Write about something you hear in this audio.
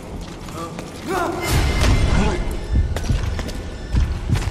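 A man grunts loudly.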